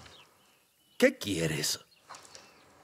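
A second man answers briefly in a low voice nearby.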